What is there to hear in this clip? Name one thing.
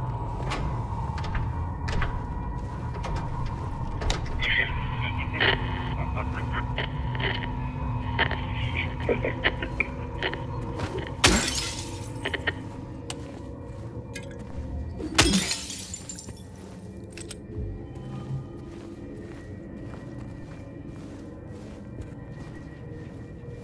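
Footsteps thud slowly across a wooden floor.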